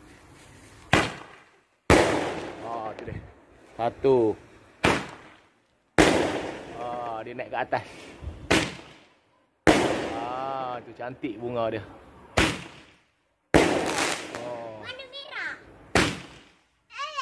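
Fireworks burst with loud, sharp bangs, one after another.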